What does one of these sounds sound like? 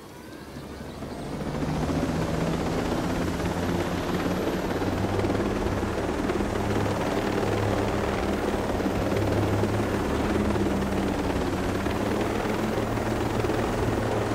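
A helicopter's rotor thrums loudly and steadily.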